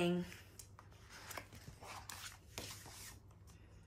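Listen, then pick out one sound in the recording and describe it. A page of a book turns with a papery rustle.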